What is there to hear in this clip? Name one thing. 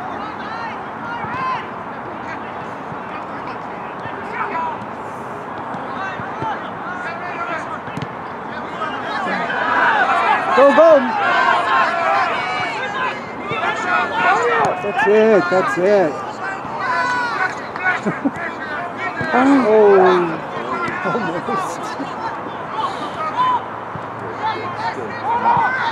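A crowd of spectators chatters in the distance.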